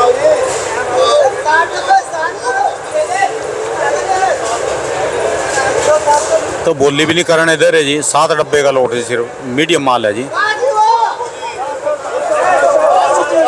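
A crowd of men talks all around, close by.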